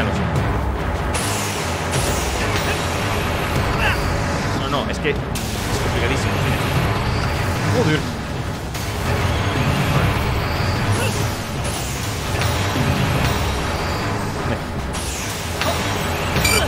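A man talks into a microphone with animation.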